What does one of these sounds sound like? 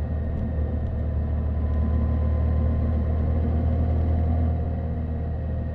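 A motorcycle engine hums steadily at a low pitch while riding.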